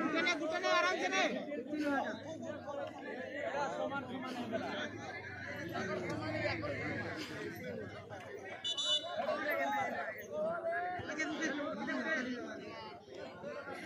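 A crowd of men chatters and shouts outdoors.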